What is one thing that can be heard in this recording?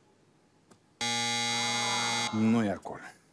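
A loud electronic buzzer sounds.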